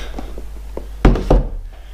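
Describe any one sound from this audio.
Hands handle a cardboard box with light knocks.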